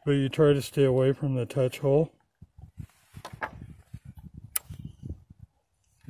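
Metal parts of a gun click and knock.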